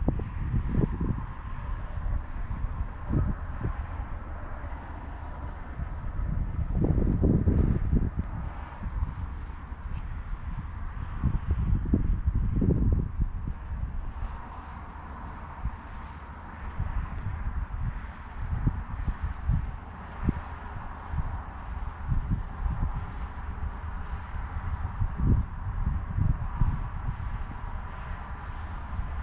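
Wind gusts and rumbles across open ground outdoors.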